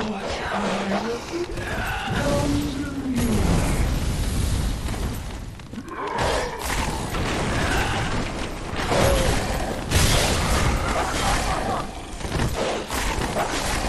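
Swords clash and strike in a fight.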